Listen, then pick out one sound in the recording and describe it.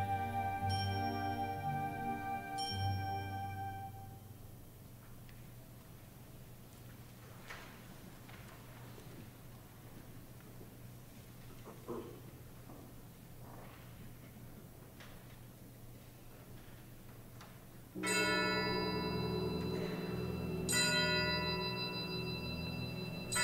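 An orchestra plays in a large echoing hall.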